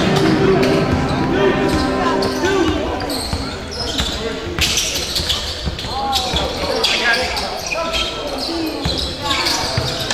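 Spectators talk and call out in the stands.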